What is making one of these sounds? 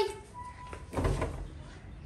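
Footsteps scuff on a paved yard.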